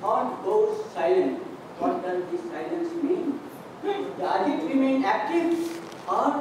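A middle-aged man speaks calmly into a microphone, heard over a loudspeaker in a large room.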